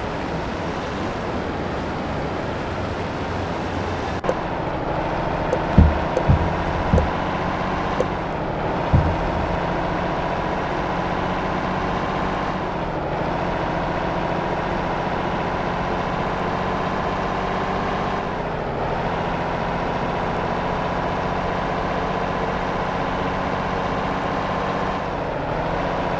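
A semi truck's diesel engine pulls away, its pitch rising and dropping as it shifts up through the gears.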